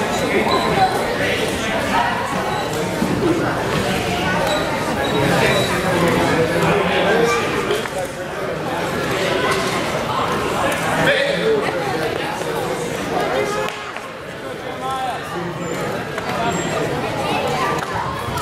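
A crowd of people chatters throughout a large echoing gym.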